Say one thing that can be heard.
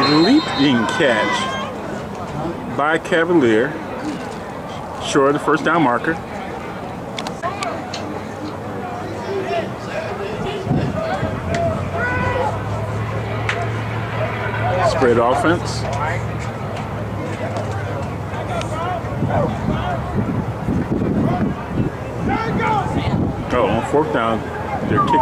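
Men shout and cheer loudly outdoors.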